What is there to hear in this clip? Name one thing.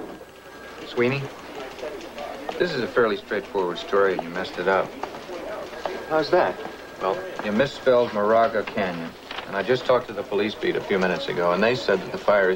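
Men talk in a lively exchange.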